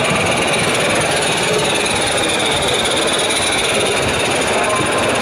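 Small model steam locomotives hiss and chuff steadily.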